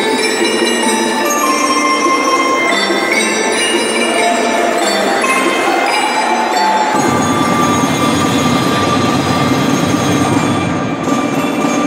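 A marching band plays a lively tune in a large echoing hall.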